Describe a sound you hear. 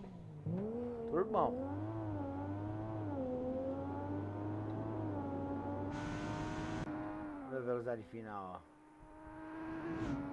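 A car engine hums steadily and rises and falls in pitch as it accelerates and shifts gears.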